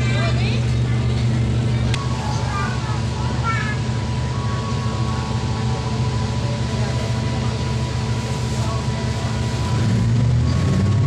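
A diesel railcar engine idles, heard from inside the carriage.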